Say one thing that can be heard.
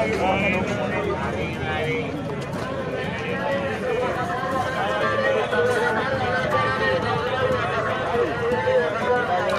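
A busy crowd of men and women chatters all around outdoors.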